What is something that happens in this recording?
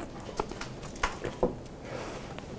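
A plastic cup knocks as it is set down on a wooden stand.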